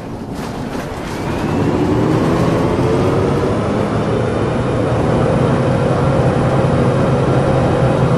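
A bus engine revs up and whines louder as the bus speeds up.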